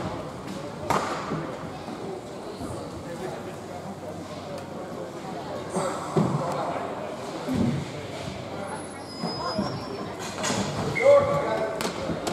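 Hockey sticks clack against a ball and the floor.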